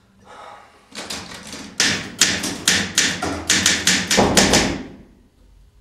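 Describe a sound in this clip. A typewriter's keys clack in quick, loud strikes.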